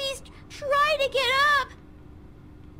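A young girl speaks in a pleading voice.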